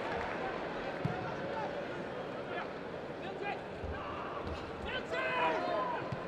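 A large stadium crowd murmurs and calls out outdoors.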